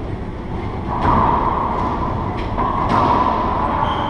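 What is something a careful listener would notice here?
A racquetball smacks off the walls with sharp echoing cracks.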